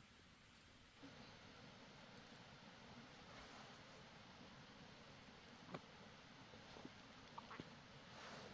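Hands pull weeds from soft soil with rustling.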